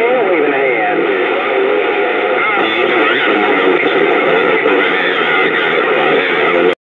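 A radio receiver hisses and warbles loudly with a distorted transmission through its small loudspeaker.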